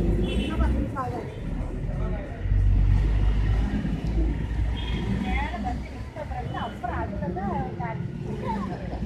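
Women and children chatter nearby in an outdoor crowd.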